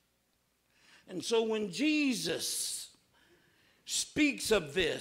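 A man speaks with expression into a microphone in a reverberant room.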